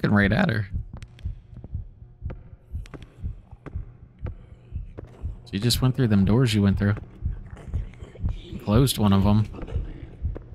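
A man speaks up close into a microphone in short bursts.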